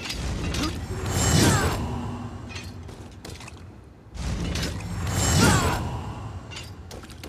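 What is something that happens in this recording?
Loud magic blasts whoosh and roar from a game over a loudspeaker.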